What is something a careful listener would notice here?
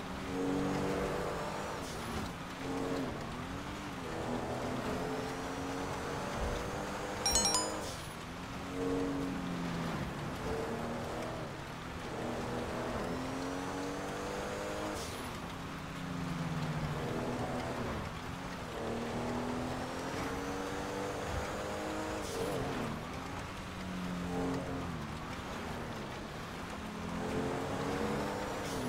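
A car engine revs steadily at speed.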